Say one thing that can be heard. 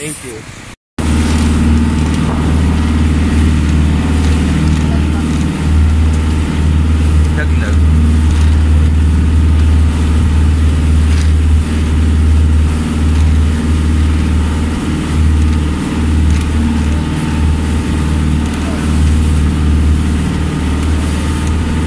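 A boat engine drones steadily and loudly.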